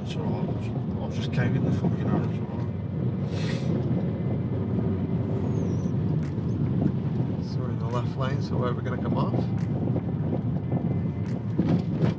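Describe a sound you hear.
A man talks calmly close by inside a car.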